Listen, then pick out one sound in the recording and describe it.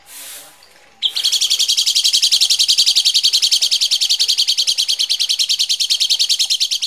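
A bird chirps harshly in rapid, steady bursts.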